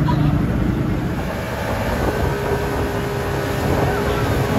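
Water rushes and churns behind a speeding boat.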